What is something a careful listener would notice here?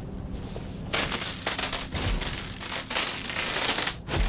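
Plaster walls crash and crumble as they are smashed through.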